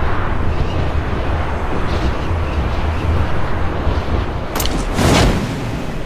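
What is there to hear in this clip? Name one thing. Wind rushes past during a freefall.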